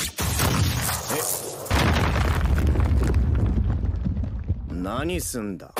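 A powerful blast roars with a deep rumble.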